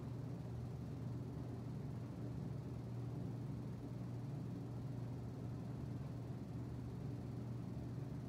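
An electric fan hums steadily nearby.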